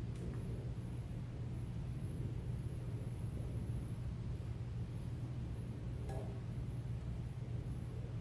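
A man speaks quietly at a distance in an echoing hall.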